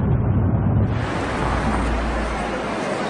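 Traffic passes on a street.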